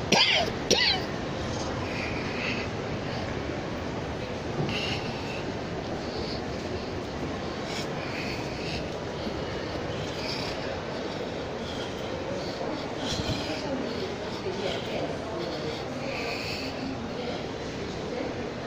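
A large indoor hall echoes with a steady murmur of distant voices.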